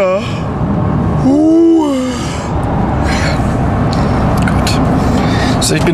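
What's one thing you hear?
A car engine and road noise rumble steadily from inside a moving car.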